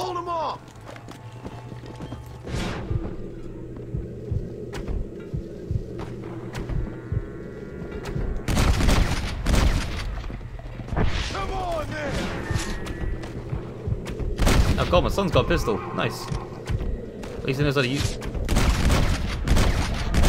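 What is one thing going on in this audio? Horses gallop with hooves thudding on dry ground.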